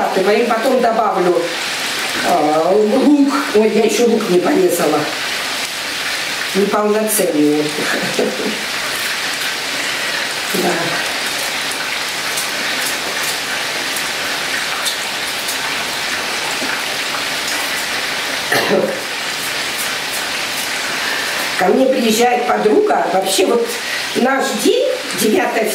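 A middle-aged woman talks calmly nearby.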